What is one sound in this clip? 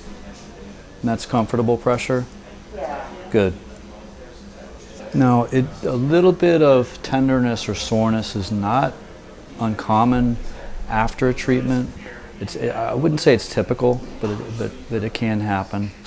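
A middle-aged man talks calmly, close by.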